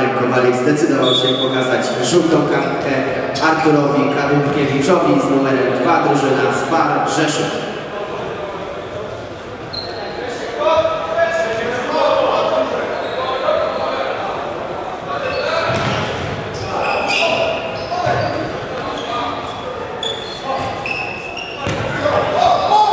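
Sports shoes squeak sharply on a hall floor.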